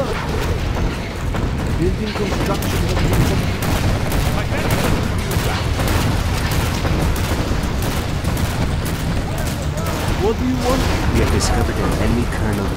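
Explosions boom and rumble continuously in a battle.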